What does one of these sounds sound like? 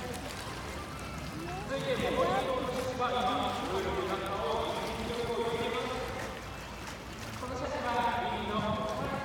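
Water laps and sloshes gently in a pool.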